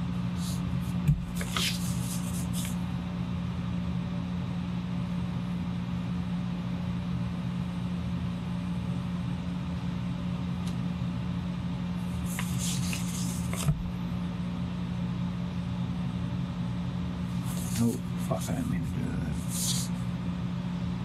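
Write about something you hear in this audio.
A sheet of paper rustles as it is shifted.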